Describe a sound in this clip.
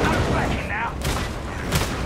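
A fiery explosion bursts with a roar.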